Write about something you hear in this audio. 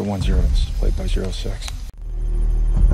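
A man speaks calmly and briskly into a radio.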